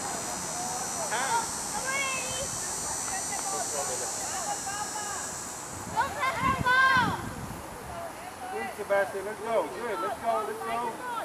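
Young children shout and call out excitedly outdoors.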